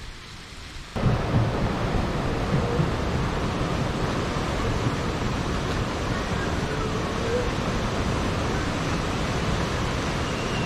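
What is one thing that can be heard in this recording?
A river flows and rushes steadily.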